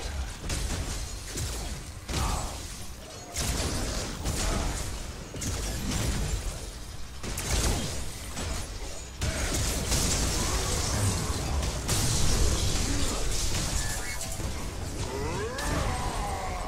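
Explosions and energy blasts boom and crackle in bursts.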